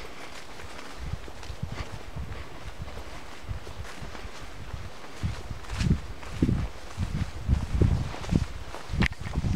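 Wind gusts rumble in bursts outdoors, growing stronger.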